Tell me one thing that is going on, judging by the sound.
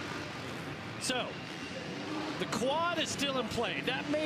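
Motorcycle engines rev and whine as the bikes race over dirt.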